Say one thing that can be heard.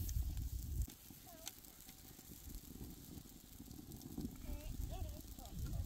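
A hand pats and spreads dough across a hot iron griddle.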